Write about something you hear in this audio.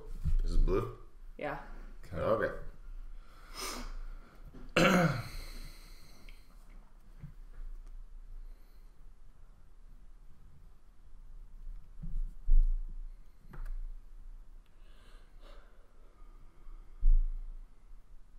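Cards slap softly onto a table.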